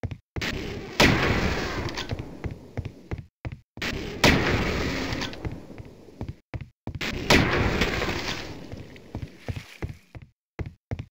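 A rifle fires loud, booming shots that echo and slowly fade.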